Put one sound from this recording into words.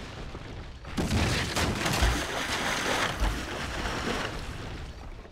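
A heavy object splashes into rough water with a loud roaring crash.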